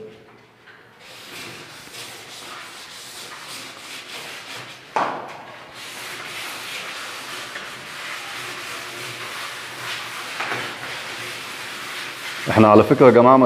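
Sandpaper rubs steadily over wood.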